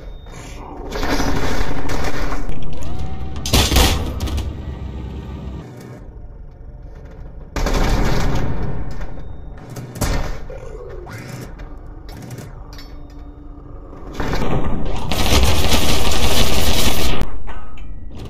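Loud explosions roar and rumble in bursts.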